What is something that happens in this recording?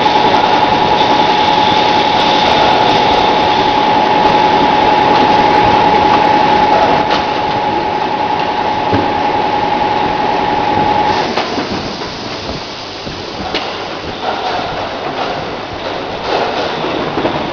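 Plastic bottles rattle and clink along a conveyor.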